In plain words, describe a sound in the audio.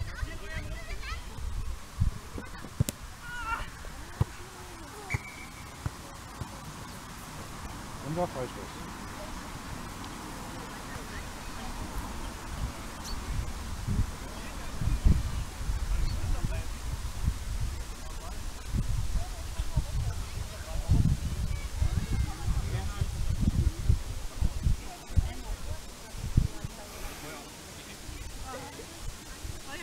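Young women call out across an open field.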